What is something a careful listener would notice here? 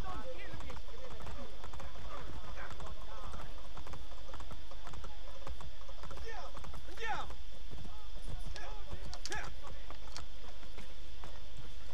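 A horse gallops with clopping hooves.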